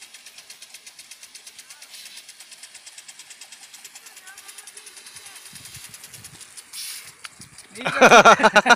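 A sprinkler ticks rapidly as it sprays water.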